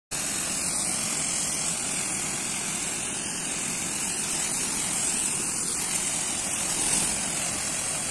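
Water gushes and sprays loudly and steadily.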